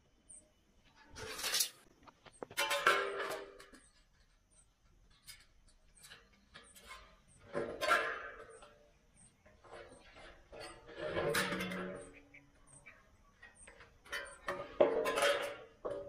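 Metal snips cut through thin sheet steel in short, crunching bursts.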